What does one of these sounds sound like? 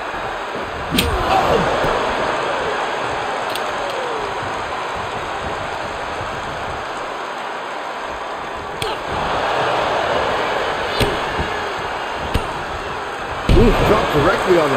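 Heavy blows thud on a wrestling ring mat.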